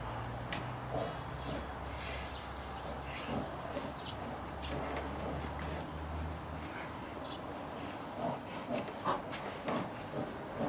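Bears growl and grunt while wrestling.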